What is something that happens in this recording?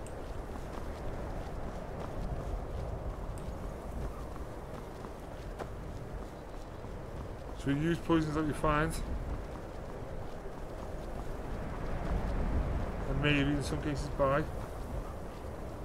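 Wind blows steadily over open snowy ground.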